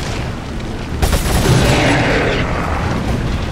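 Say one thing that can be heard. A loud explosion bursts and rumbles away.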